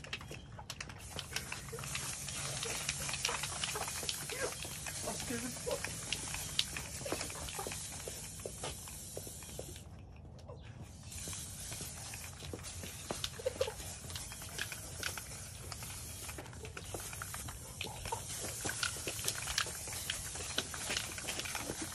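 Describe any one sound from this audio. Spray paint cans hiss in bursts close by.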